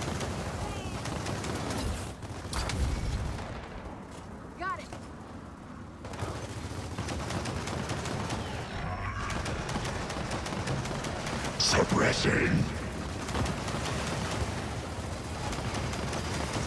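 Gunfire rattles in rapid bursts amid battle noise.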